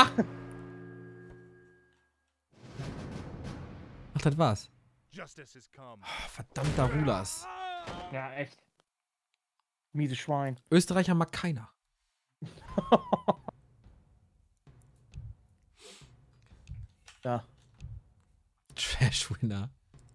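A man laughs into a close microphone.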